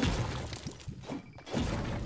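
A pickaxe strikes a wall.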